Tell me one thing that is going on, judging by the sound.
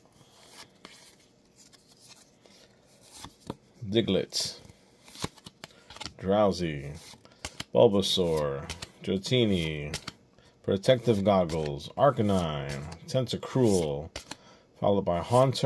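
Cards slide against each other as they are flipped through.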